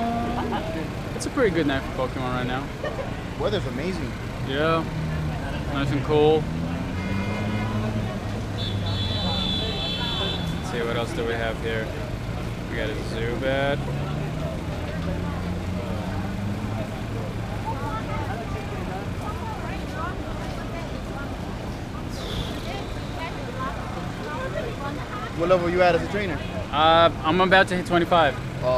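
A young man talks into a nearby microphone, off and on.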